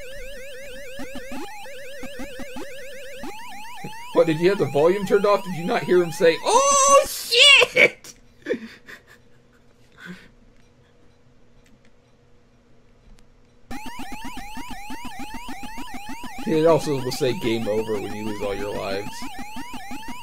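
An electronic arcade siren warbles up and down.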